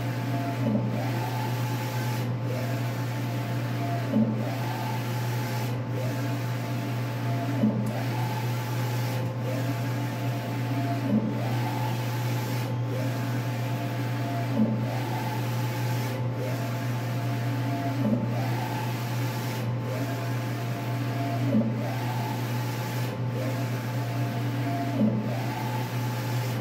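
A printer hums steadily.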